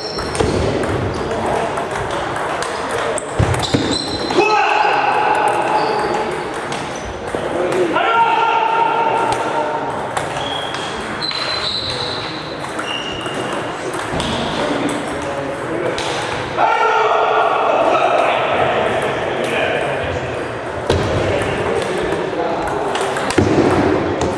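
A table tennis ball clicks back and forth on paddles and a table.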